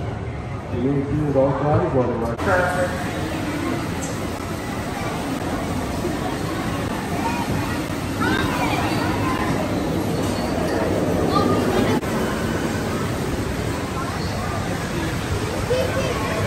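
A crowd of children and adults chatters and calls out nearby.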